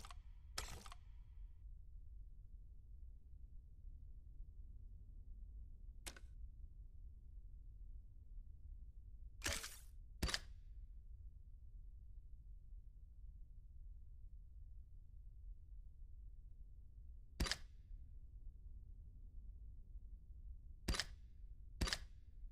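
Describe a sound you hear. Short interface clicks sound as menu buttons are tapped.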